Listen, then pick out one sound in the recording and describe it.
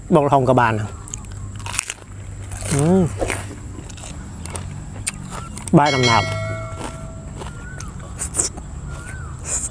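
Crunchy vegetables snap and crunch in a man's mouth.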